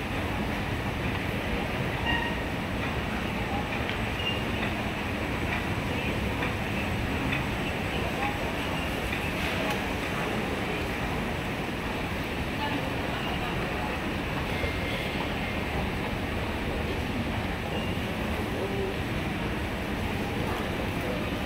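An escalator hums and rumbles steadily in an echoing hall.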